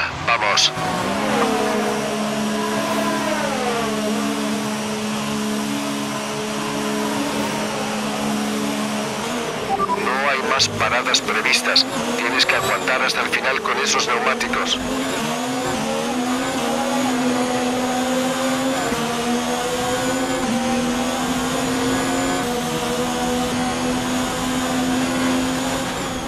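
A racing car engine drones and revs up and down.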